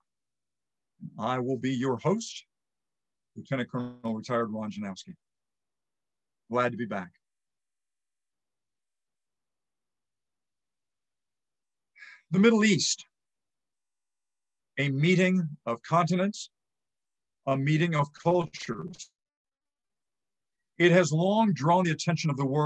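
An elderly man speaks calmly in short phrases, heard through an online call.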